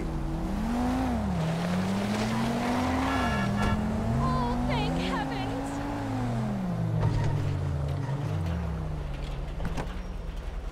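A car engine revs and changes pitch as the car accelerates.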